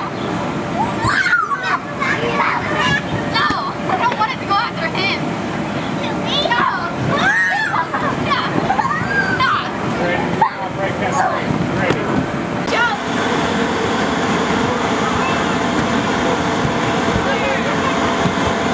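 Children thump and bounce on an inflatable.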